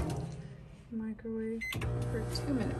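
Microwave buttons beep.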